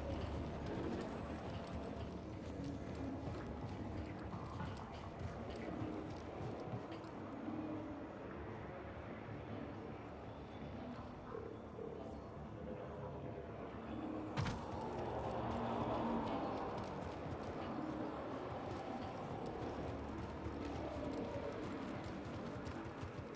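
Footsteps run on metal stairs and grating.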